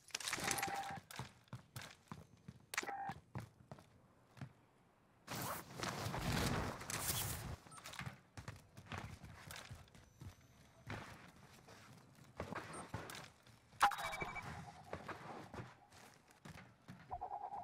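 Footsteps clatter quickly on hard floors.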